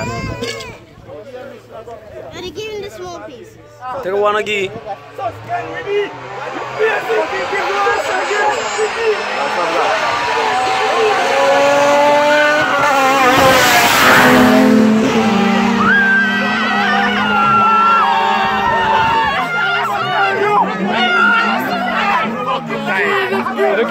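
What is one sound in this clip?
Men talk and shout excitedly close by.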